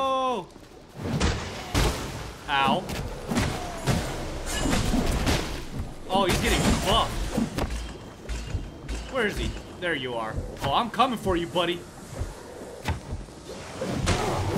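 Weapons clash and strike in a fight, with rapid thuds and hits.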